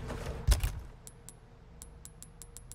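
Short soft clicks tick several times.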